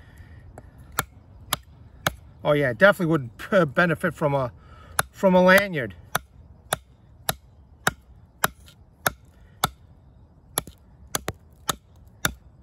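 A knife blade chops into a dry branch with sharp, regular knocks.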